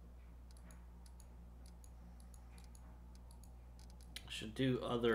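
Soft, short interface ticks sound repeatedly as menu options are highlighted.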